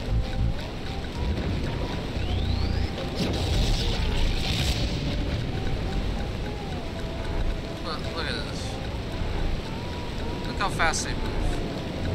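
Electricity crackles and fizzes with sparkling chimes.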